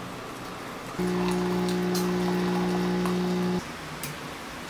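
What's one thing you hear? An espresso machine pumps with a steady hum.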